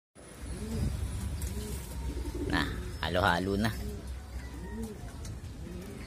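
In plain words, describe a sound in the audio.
Pigeons coo softly and repeatedly close by.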